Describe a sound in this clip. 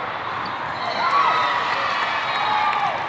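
Young women players shout and cheer loudly.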